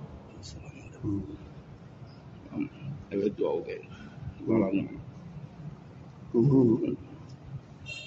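An elderly man speaks softly and haltingly into a microphone.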